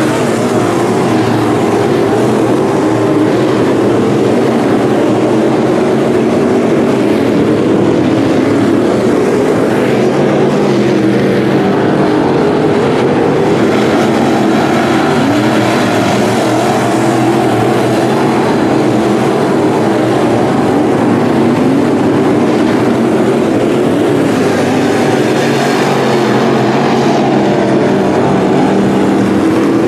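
Race car engines roar loudly as they speed around a dirt track.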